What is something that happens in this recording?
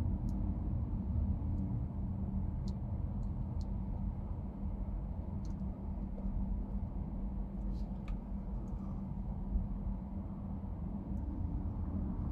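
Traffic rumbles on a busy road nearby.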